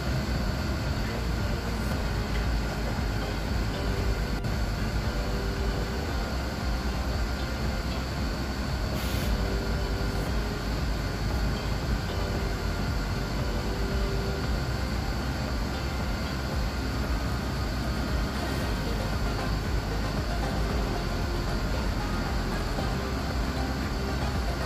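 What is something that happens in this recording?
A bus rattles and vibrates over the road.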